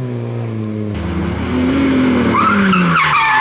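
A second rally car engine roars as it approaches.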